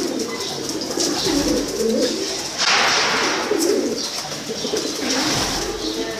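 A pigeon's wings flap as it takes off.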